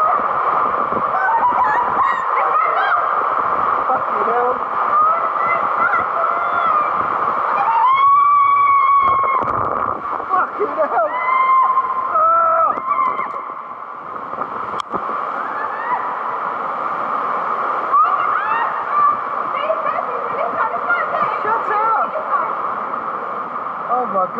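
A woman screams excitedly at close range.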